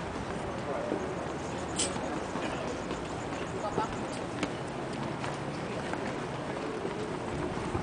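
A tennis ball bounces on a hard court several times.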